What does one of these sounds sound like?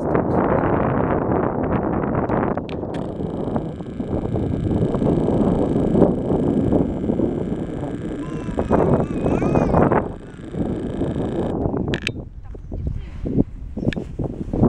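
Wind gusts and rumbles loudly outdoors.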